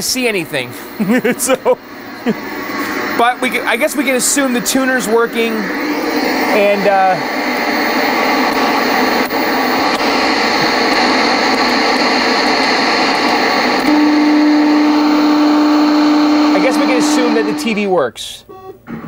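Television static hisses loudly and steadily.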